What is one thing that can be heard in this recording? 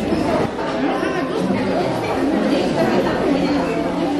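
A crowd of people murmurs and talks at tables.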